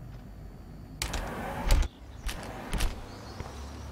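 A sliding glass door opens.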